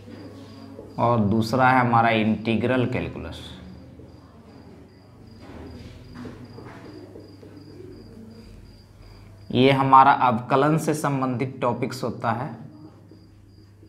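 A man speaks in bursts, explaining calmly.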